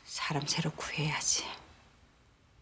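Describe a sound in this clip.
A middle-aged woman speaks tensely, close by.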